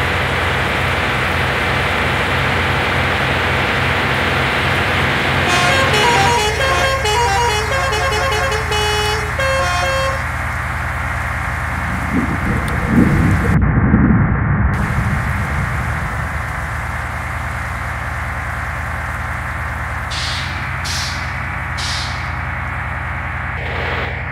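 A truck engine drones steadily as it drives along the road.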